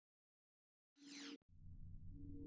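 A short electronic whoosh sweeps downward.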